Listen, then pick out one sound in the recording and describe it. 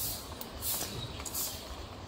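Footsteps tap steadily on a paved path.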